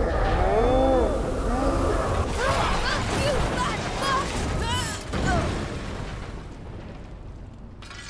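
A deep rumbling roar fills the air and slowly fades.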